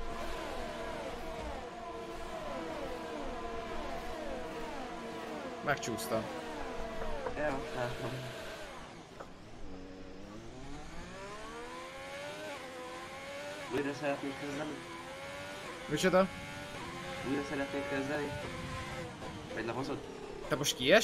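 A racing car engine roars and shifts up through the gears.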